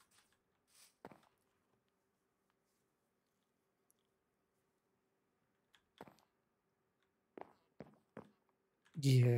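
Footsteps thud softly on wooden planks.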